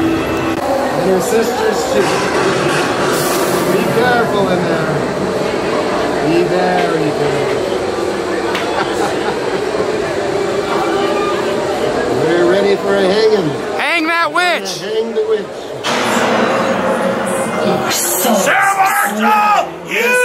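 A man speaks dramatically through a loudspeaker.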